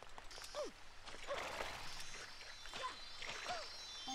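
Water sprays and splashes with a rushing hiss.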